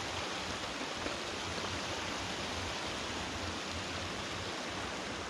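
Water trickles and splashes steadily over a small weir.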